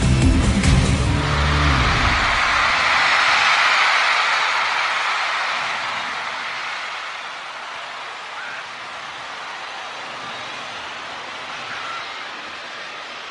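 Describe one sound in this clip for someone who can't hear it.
A large crowd cheers and screams in a big echoing hall, slowly fading.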